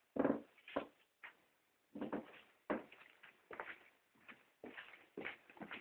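Footsteps thud down wooden stairs.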